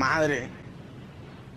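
A young woman exclaims with animation close to a microphone.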